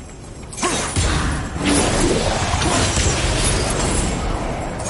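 A heavy metal mechanism grinds and rumbles as it turns.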